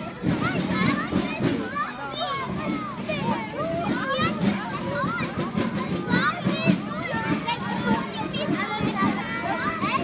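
A crowd of children chatter and call out excitedly outdoors.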